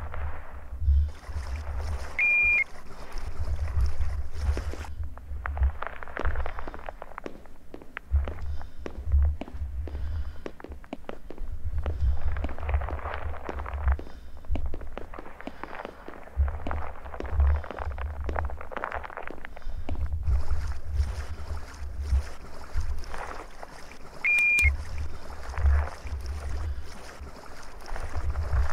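Water laps and sloshes gently in an echoing indoor pool.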